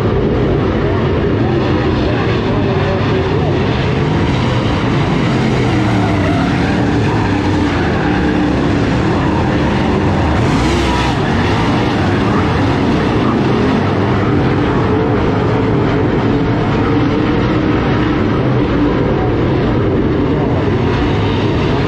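Many race car engines roar loudly and steadily nearby.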